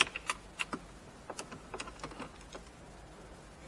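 A pry tool clicks against plastic trim.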